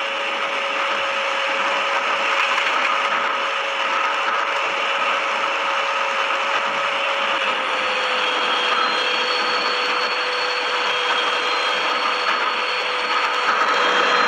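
A train's electric motor hums and drops slightly in pitch as it slows.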